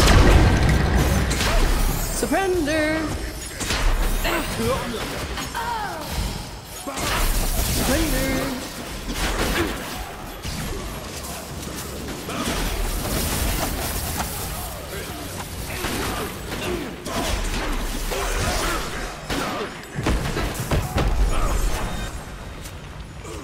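Game spells crackle and boom in a busy fight.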